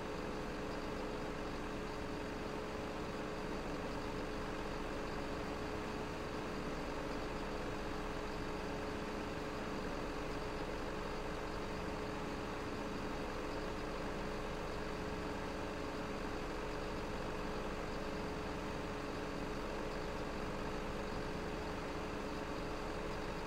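A diesel engine drones steadily.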